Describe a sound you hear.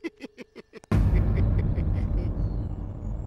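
A man sobs loudly.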